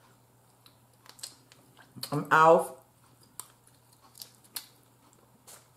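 Food crackles and clicks wetly as a woman eats it close to a microphone.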